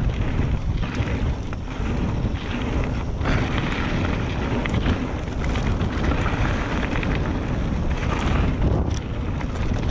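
Wind roars past outdoors.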